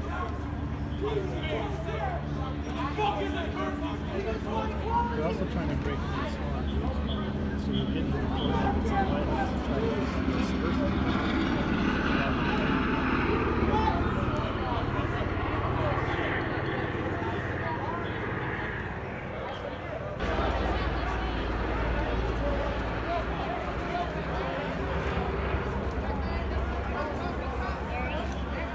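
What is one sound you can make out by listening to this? A large crowd of men and women chants and shouts outdoors, heard from a distance.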